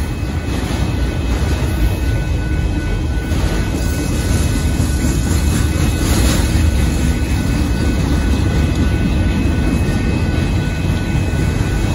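A freight train rumbles past on the tracks.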